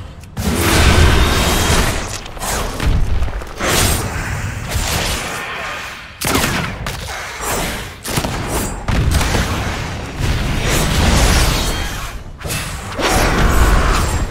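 A large winged beast screeches and roars.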